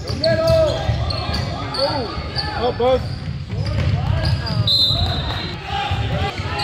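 Sneakers squeak on a hardwood basketball court.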